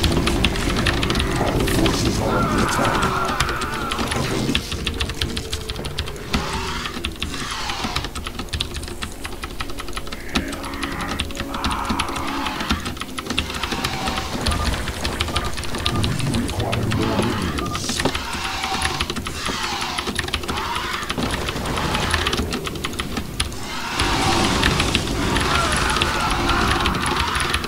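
Game sound effects and unit acknowledgements play throughout.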